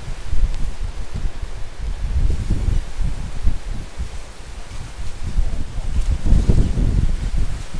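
Strong wind gusts and buffets loudly outdoors.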